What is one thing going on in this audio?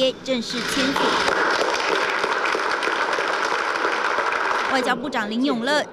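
A crowd applauds.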